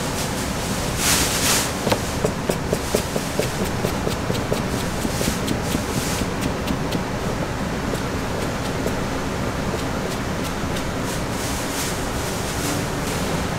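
A knife chops quickly on a cutting board.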